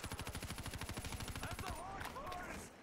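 A rapid-fire gun shoots a fast, steady burst.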